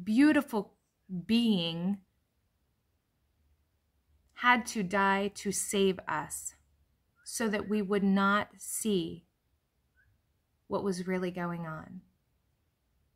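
A woman speaks calmly in short phrases, close to the microphone.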